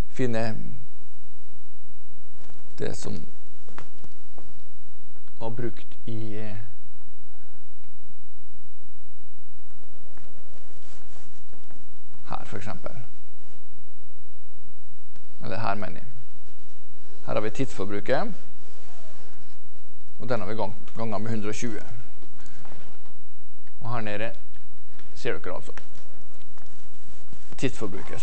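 A man lectures calmly, with pauses between phrases.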